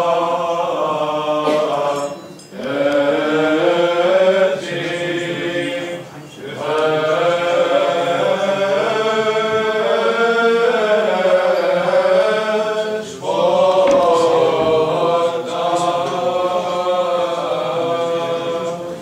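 Men's voices chant together in slow, drawn-out singing that echoes through a reverberant hall.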